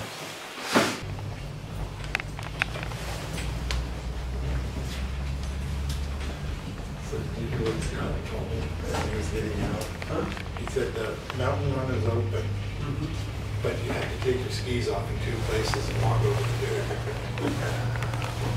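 A cable car cabin hums and rumbles steadily as it travels.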